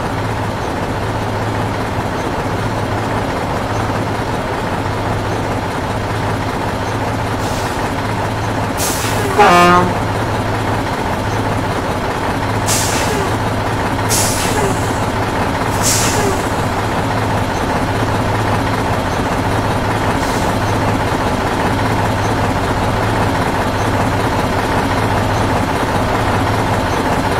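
A heavy truck engine rumbles steadily as the truck creeps forward.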